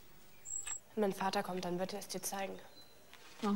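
A young woman speaks close by in a low, firm voice.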